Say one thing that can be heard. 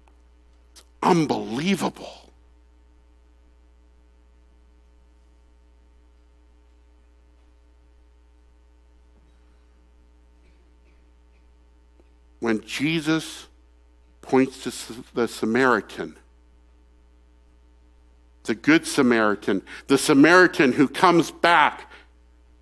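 A man speaks calmly into a microphone, in short bursts with long pauses.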